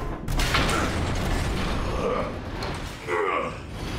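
Metal robots clash and grapple with heavy clanking.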